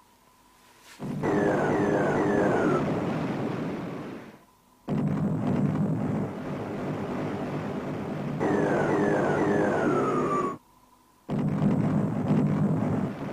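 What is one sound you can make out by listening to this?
A ship's engines rumble at sea.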